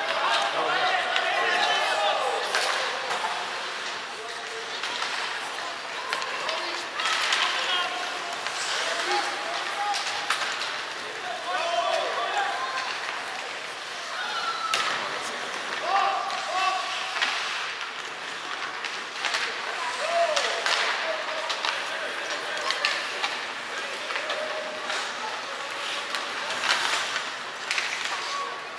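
Skates scrape across ice in a large echoing arena.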